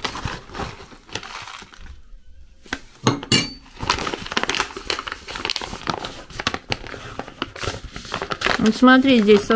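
A plastic packet crinkles and rustles in someone's hands.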